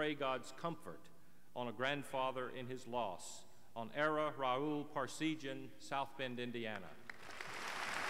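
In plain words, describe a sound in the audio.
A middle-aged man speaks calmly into a microphone over loudspeakers in a large echoing hall.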